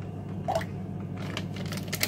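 Milk pours into a pot.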